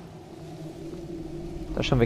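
A small fire crackles softly.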